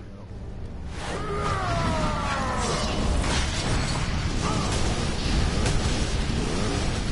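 Energy blasts crackle and whoosh in a fight.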